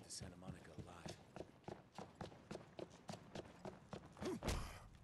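Footsteps tap steadily on pavement.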